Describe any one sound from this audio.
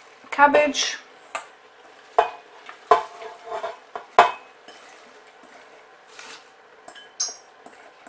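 Chopped greens rustle and drop into a metal pot.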